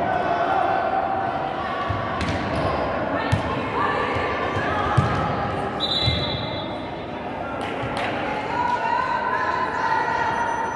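A crowd shouts in a large echoing hall.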